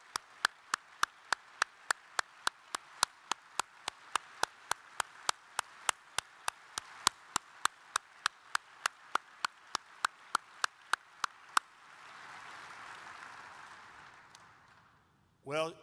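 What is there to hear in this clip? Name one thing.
A large crowd applauds and fades away.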